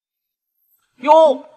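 A man calls out loudly close by.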